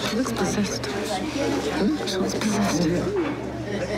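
A young woman talks close by.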